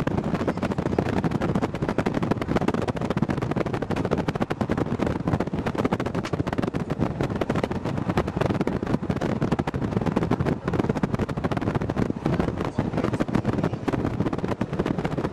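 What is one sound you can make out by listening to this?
Wind buffets loudly past a moving vehicle.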